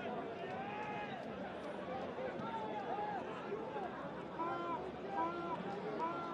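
A crowd in a stadium murmurs and cheers.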